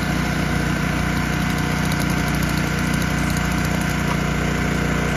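A petrol engine runs steadily and loudly close by.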